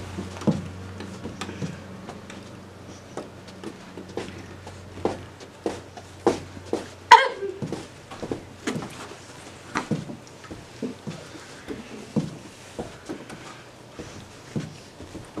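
Hands slap and tap lightly against each other and the body, close by.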